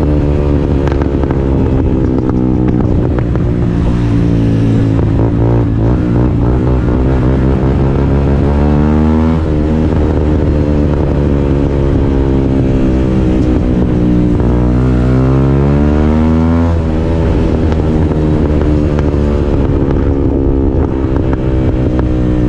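A motorcycle engine roars close by, revving up and dropping back through gear changes.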